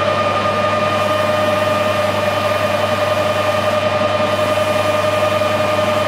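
An abrasive pad rubs against a spinning metal part.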